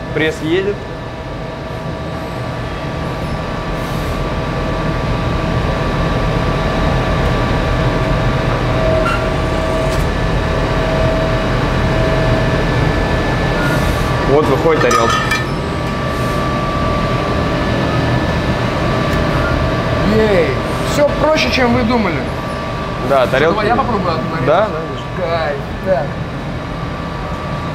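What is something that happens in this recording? A hydraulic press hums steadily.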